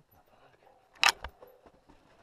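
A loud knock sounds as a bike jolts over a bump.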